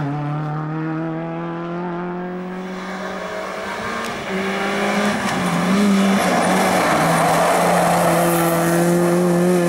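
A rally car engine roars close by, revving up and down between gear changes.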